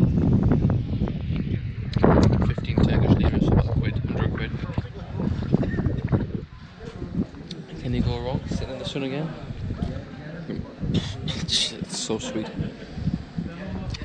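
A young man talks with animation close to a microphone, outdoors in light wind.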